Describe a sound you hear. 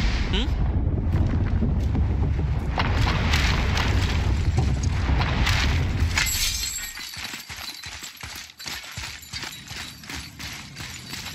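Heavy footsteps tread through grass and brush.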